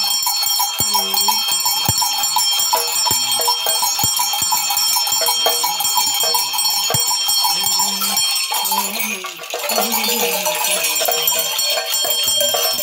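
Metal bells jingle steadily.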